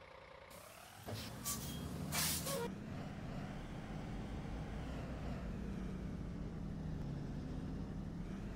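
A bus engine rumbles louder as the bus pulls away and drives on.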